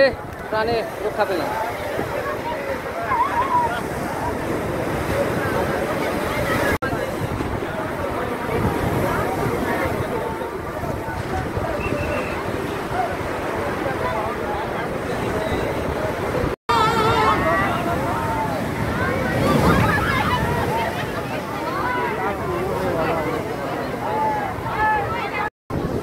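Waves crash and surge against the shore.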